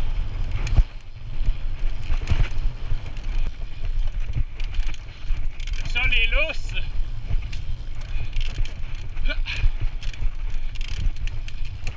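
A bicycle rattles and clanks over bumps.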